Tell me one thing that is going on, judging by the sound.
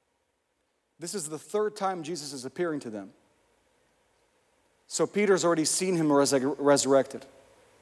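A young man speaks calmly into a microphone, heard through loudspeakers.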